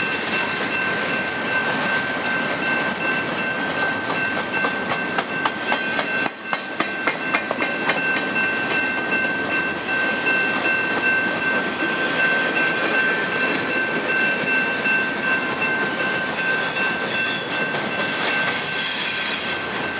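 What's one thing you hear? Train wheels squeal with a steady high whine.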